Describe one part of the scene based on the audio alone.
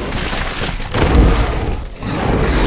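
A heavy thud sounds as a body is knocked to the ground.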